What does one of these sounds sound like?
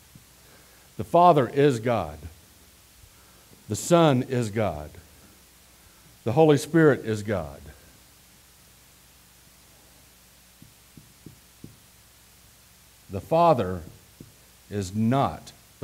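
A middle-aged man speaks calmly through a headset microphone.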